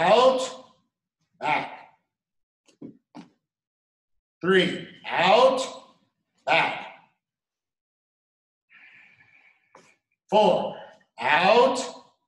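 A man speaks calmly in short phrases, in a room with a slight echo.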